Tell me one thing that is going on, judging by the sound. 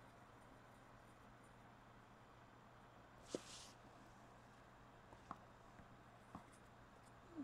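A brush dabs and taps softly on a hard surface.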